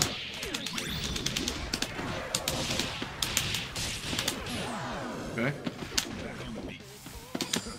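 Punches and slashes hit with sharp impacts in a video game fight.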